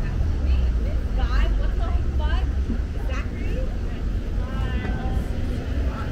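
Passers-by talk in the distance.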